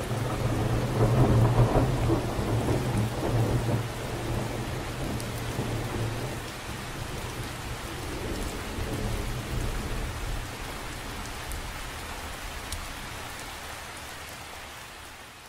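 Wind rumbles outdoors, gusting and easing.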